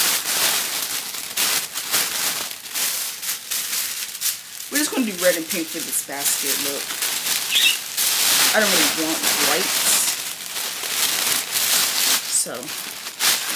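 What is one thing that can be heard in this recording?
Tissue paper rustles and crinkles as it is handled.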